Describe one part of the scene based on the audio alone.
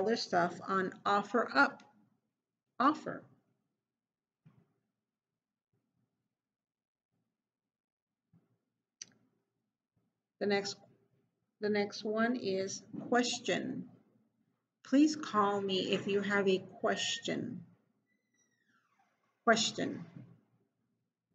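A woman speaks calmly into a nearby microphone, pausing between phrases.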